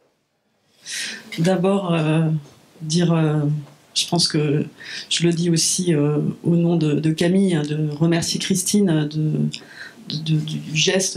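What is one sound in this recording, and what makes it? A woman speaks calmly and steadily through a microphone.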